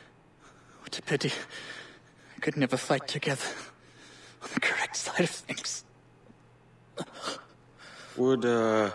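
A man speaks in a strained, pained voice, close by.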